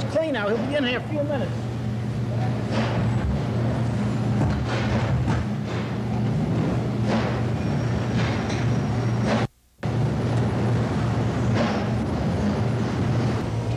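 Dough slaps and thumps on a table.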